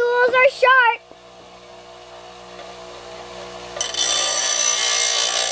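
A bench grinder motor hums steadily.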